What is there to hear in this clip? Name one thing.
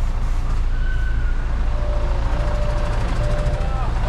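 A truck's cab door clicks open.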